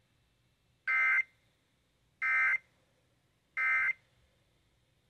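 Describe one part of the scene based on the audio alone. A radio gives a series of short, loud alert beeps.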